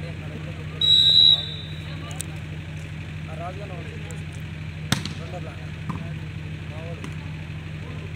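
A crowd of men chatters and calls out outdoors.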